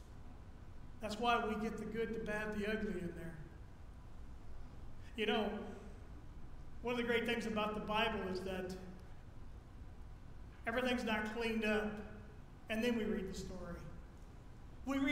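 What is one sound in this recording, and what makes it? A middle-aged man speaks calmly in bursts through a microphone in a large echoing hall.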